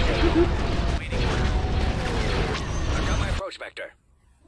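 A spaceship engine roars as it flies past.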